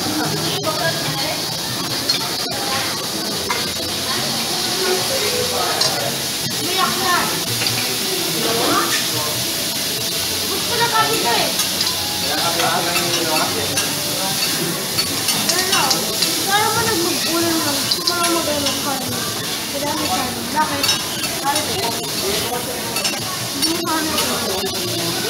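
Meat sizzles steadily on a hot griddle.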